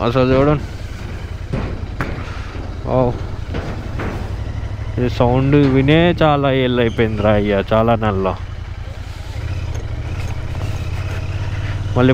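A motorcycle engine rumbles steadily at low speed.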